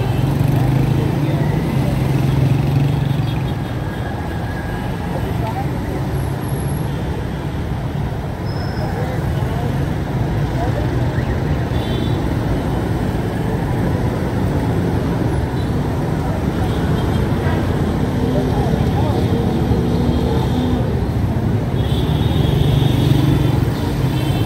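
Motorcycle and auto-rickshaw engines rumble and putter close by in heavy traffic.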